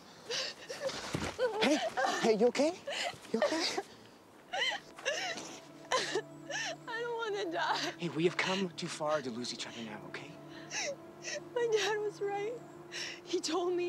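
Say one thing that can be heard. A young woman sobs and cries loudly, close by.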